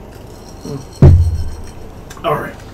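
A deep, booming thud sounds as a game character arrives in a burst of light.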